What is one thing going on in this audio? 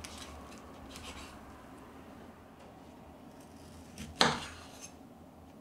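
A knife slices through a tomato and taps on a wooden board.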